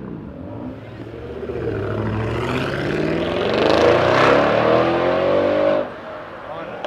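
A car accelerates past with a loud roar.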